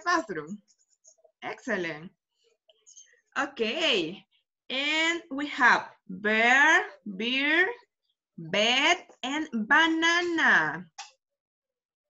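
A woman speaks clearly and with animation over an online call.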